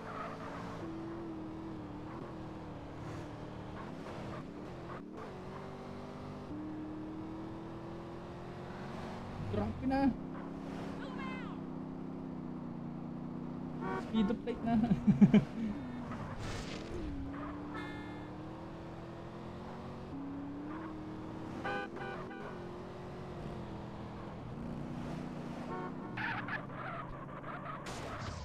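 A car engine hums steadily and shifts pitch as it speeds along.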